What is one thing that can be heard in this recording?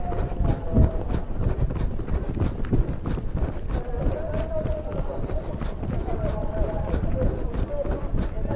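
A runner breathes hard close by.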